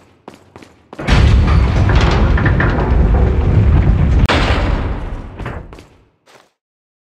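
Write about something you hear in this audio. A heavy door rumbles and grinds open.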